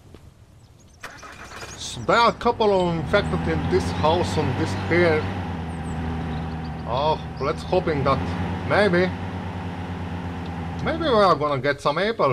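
A truck engine rumbles and revs as the truck drives.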